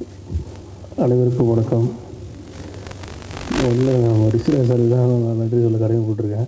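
A man speaks loudly into a microphone over a loudspeaker in a large echoing hall.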